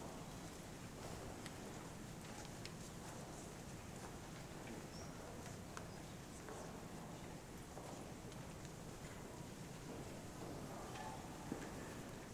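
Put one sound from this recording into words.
Footsteps shuffle on a hard floor in a large echoing hall.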